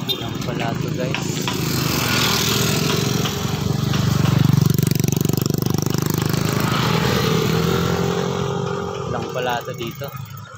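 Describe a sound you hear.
A motorbike engine approaches, passes close by and fades away.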